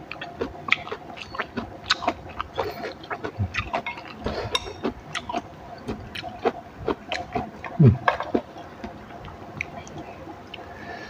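A woman chews and smacks her lips loudly, close to the microphone.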